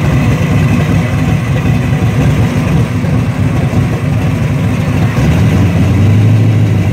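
A car engine rumbles at a low idle as the car rolls slowly forward.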